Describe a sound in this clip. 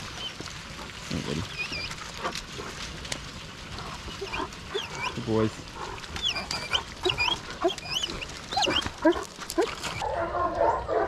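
Water trickles gently over stones.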